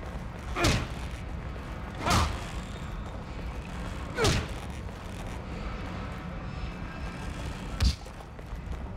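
A man strikes hard with an axe, with loud heavy blows.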